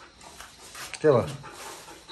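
A dog barks nearby.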